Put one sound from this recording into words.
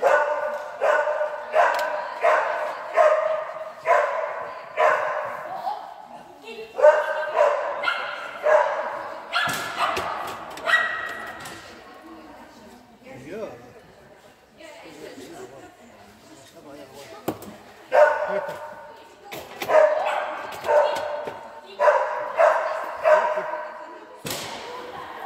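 A dog barks excitedly over and over, echoing in a large hall.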